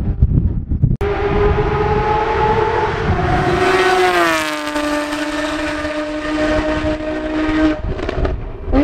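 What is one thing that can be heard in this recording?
A racing car engine roars past at high speed, its pitch dropping as it goes by and then fading.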